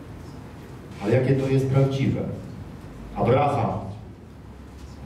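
A man speaks with emphasis through a headset microphone, heard over loudspeakers in a large room.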